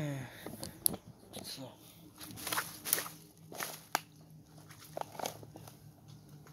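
Dry reeds and grass rustle and crackle underfoot.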